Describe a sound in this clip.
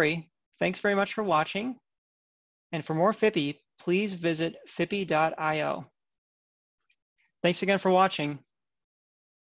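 A young man speaks calmly and warmly through a microphone on an online call.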